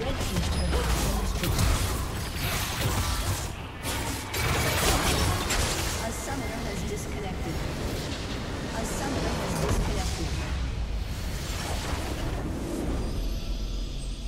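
Game spell effects crackle and boom in a busy battle.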